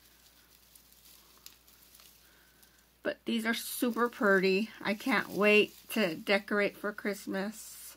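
Tinsel rustles as a hand brushes through it.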